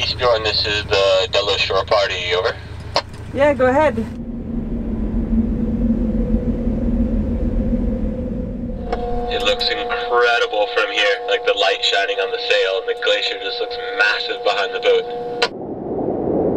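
A woman speaks calmly into a handheld radio.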